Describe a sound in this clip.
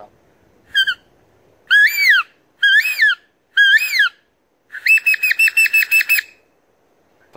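A man whistles loud bird calls through his cupped hands.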